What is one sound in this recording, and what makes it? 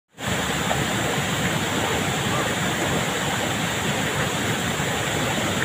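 A waterfall splashes steadily into a pool.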